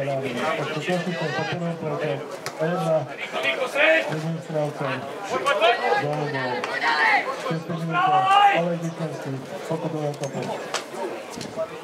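A man talks loudly and animatedly close by.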